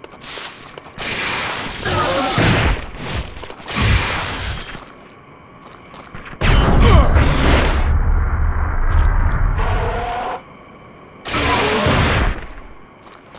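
Gunshots blast in quick bursts.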